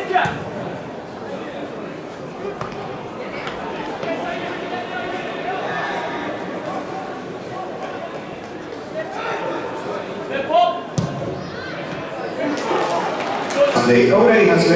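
Players shout to each other across an open, echoing stadium.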